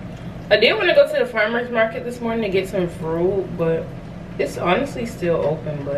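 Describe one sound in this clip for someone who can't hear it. A thick drink pours into a glass.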